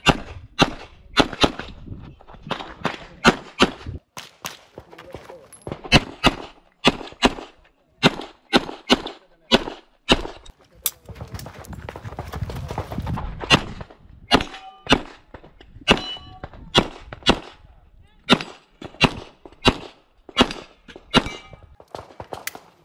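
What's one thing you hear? Pistol shots crack in quick bursts outdoors, echoing off a hillside.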